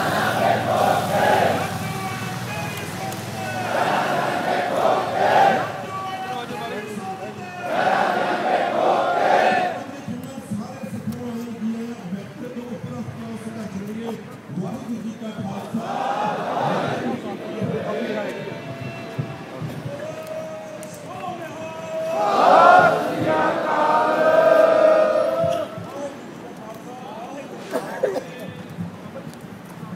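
Many voices of a crowd murmur and call out in the open air.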